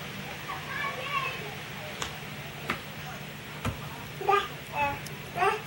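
A baby babbles and squeals nearby.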